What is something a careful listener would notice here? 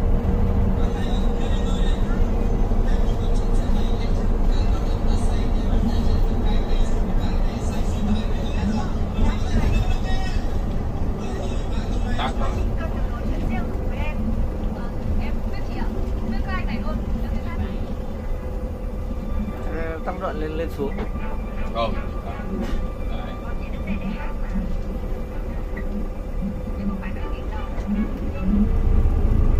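Traffic rushes past outside a moving bus.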